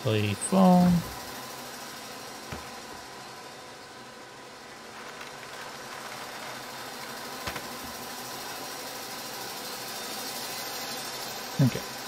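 A circular saw blade whirs and grinds.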